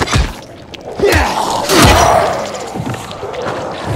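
A creature snarls and groans.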